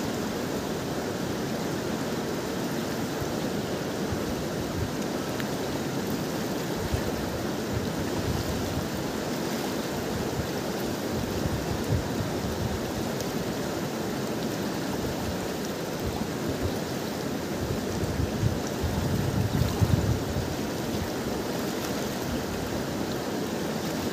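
A wide river rushes steadily over stones nearby.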